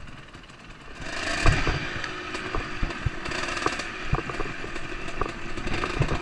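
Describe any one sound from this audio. A dirt bike engine hums as the bike rides along a bumpy trail.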